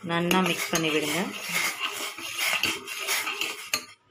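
A metal spoon stirs and scrapes inside a metal pot.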